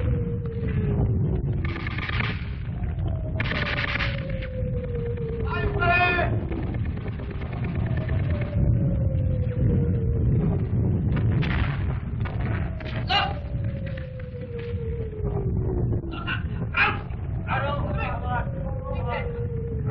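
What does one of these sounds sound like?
Explosions boom and rumble close by.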